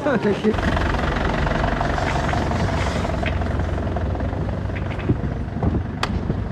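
A van engine idles with a low rumble.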